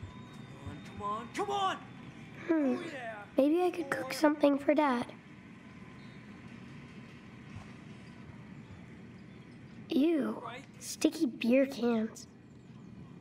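A young boy speaks to himself, close by.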